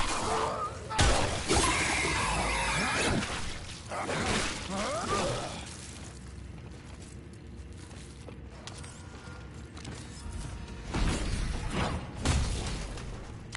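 Heavy blows thud and crunch against flesh.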